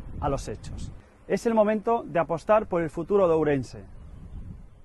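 A middle-aged man speaks firmly and clearly into a microphone, close by.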